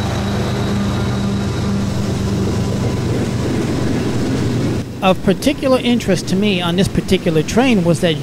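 Freight car wheels clatter on the rails.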